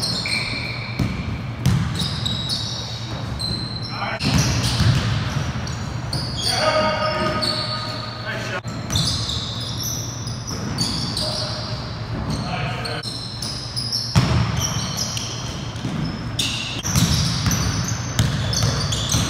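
Men call out to each other, echoing in a large hall.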